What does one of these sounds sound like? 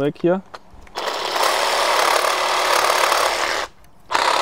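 A cordless saw buzzes loudly, cutting through roots.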